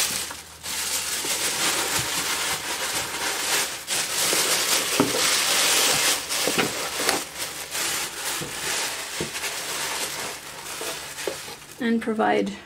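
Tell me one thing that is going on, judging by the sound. Plastic wrapping rustles and crinkles as hands rummage in a cardboard box.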